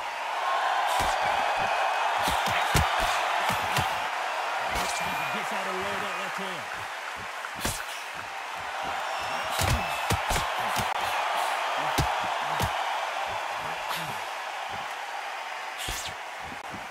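Gloved punches land with thuds.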